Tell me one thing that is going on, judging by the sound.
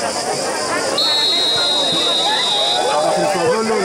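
A referee blows a whistle at kickoff.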